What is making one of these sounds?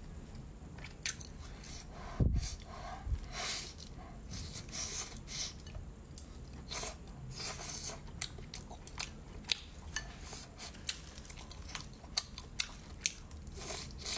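A young woman chews food wetly and loudly, close to a microphone.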